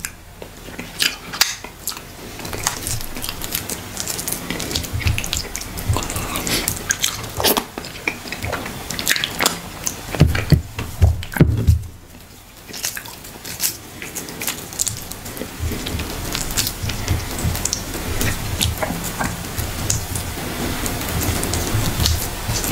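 A young man chews loudly with his mouth open, smacking wetly.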